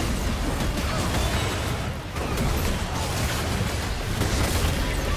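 Magic blasts crackle and boom in a fight.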